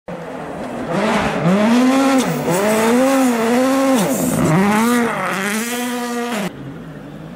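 A rally car engine roars close by, revving up and down through the gears.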